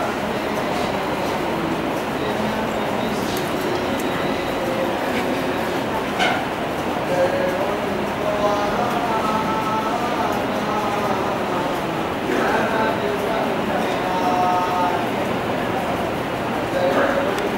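A crowd of boys murmurs in a large echoing hall.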